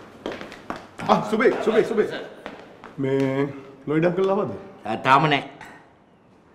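A middle-aged man speaks nearby.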